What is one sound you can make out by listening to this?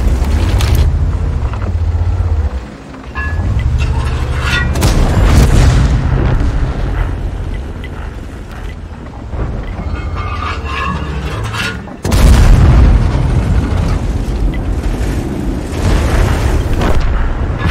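Tank guns fire with loud booms.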